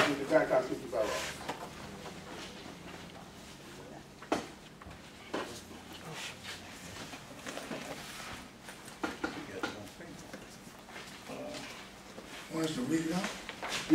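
A man speaks slowly into a microphone, heard through a loudspeaker in an echoing room.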